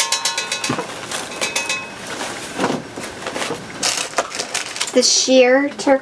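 Plastic ribbon and mesh rustle and crinkle as they are handled.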